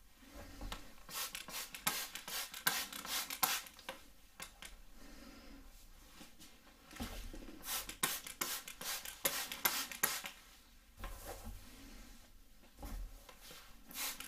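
A spray bottle spritzes water.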